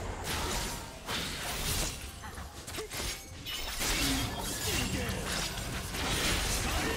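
Magic blasts and impact sounds crackle in a fast game battle.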